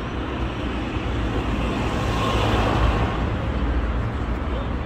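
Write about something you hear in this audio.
A pickup truck drives past close by.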